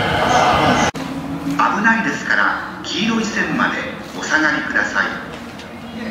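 A crowd murmurs in a large echoing station.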